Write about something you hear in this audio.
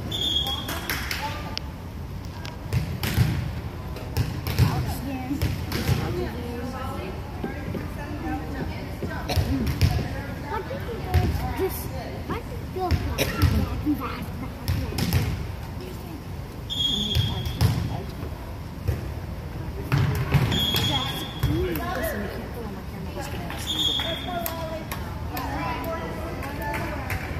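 Young girls call out to each other in an echoing gym.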